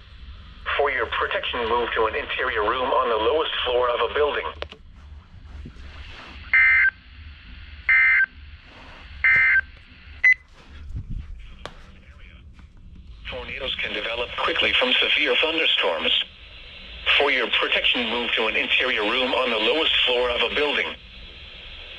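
A man's voice reads out through a small loudspeaker.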